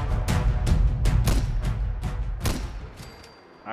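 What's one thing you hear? Rifle shots ring out in quick succession.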